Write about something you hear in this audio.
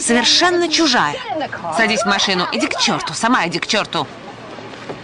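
A young woman answers in a raised voice.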